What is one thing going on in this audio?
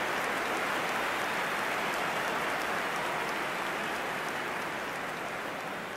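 A large crowd roars in a stadium.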